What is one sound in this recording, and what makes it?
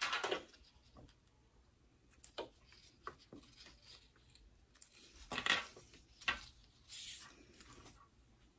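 Fabric rustles and crinkles as hands handle it.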